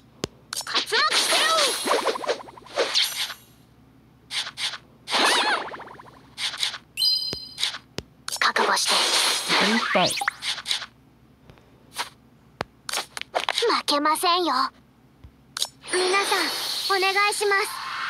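Sharp hit and blast effects strike in quick bursts.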